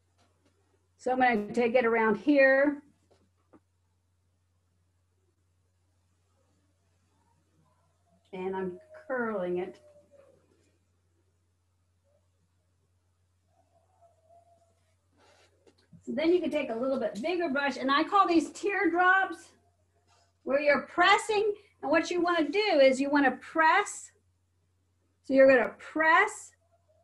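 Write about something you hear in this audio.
A middle-aged woman talks calmly close by, in short bursts with pauses.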